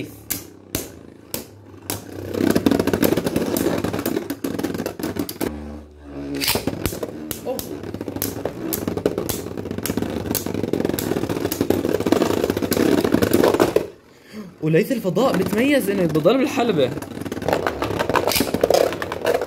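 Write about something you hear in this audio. Spinning tops clash with sharp clicks.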